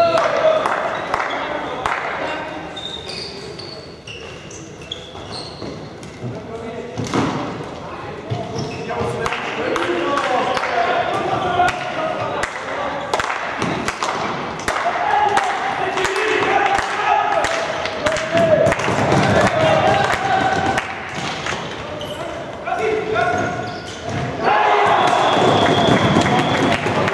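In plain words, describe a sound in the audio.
Players shout and call out to each other in a large echoing hall.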